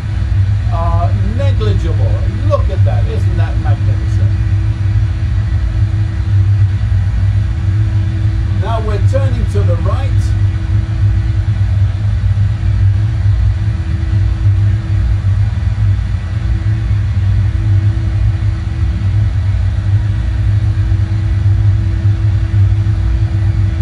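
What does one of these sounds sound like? A steady low engine drone hums throughout.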